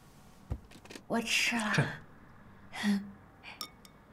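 A young woman answers softly nearby.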